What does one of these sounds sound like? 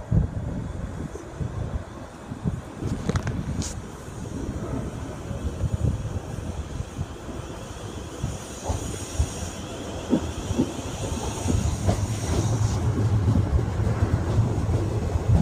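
An electric multiple-unit train approaches and rolls past close by.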